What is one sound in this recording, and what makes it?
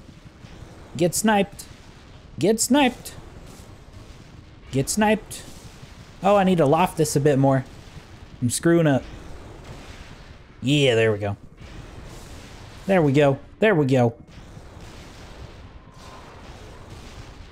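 A plasma cannon fires bursts of shots.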